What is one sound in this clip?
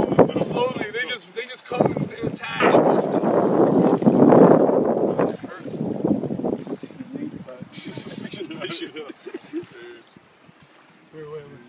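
A river's water flows and splashes over stones.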